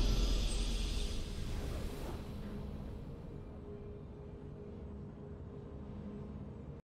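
A triumphant game fanfare rings out and slowly fades.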